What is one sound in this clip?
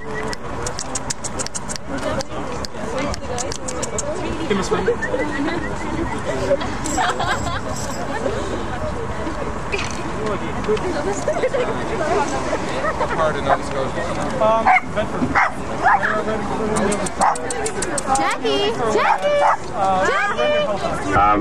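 Several men and women talk and laugh together nearby, outdoors.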